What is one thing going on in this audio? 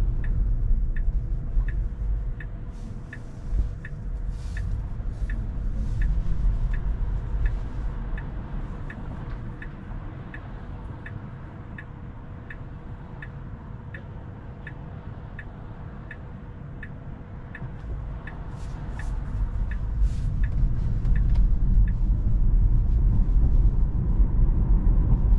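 Road noise rumbles low inside a moving car, growing louder as the car speeds up.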